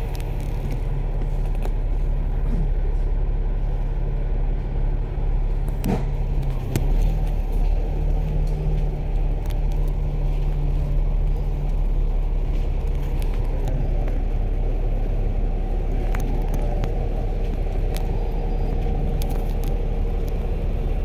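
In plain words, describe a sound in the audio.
A bus engine rumbles steadily close by.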